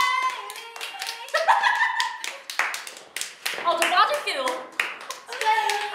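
Young women clap their hands.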